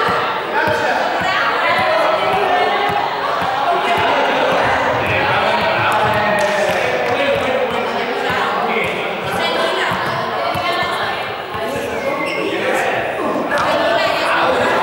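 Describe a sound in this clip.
Teenagers chatter and call out in a large echoing hall.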